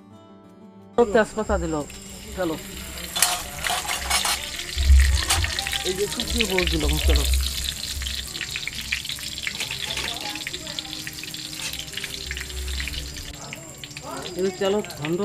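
Oil sizzles and spits in a hot pan.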